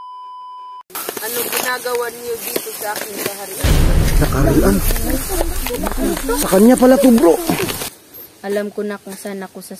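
A young girl speaks calmly and close by.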